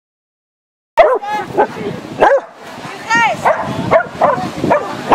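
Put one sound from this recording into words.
A dog barks repeatedly and excitedly outdoors.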